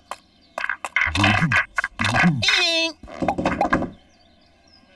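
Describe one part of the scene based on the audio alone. A sheep bleats in a comic voice.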